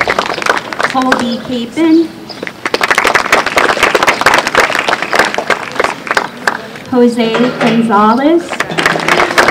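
A young woman speaks into a microphone over a loudspeaker outdoors, reading out.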